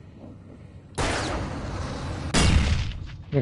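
A flare bursts with a loud hiss.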